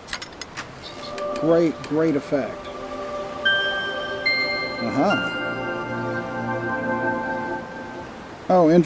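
A magical chime rings out as a chest opens.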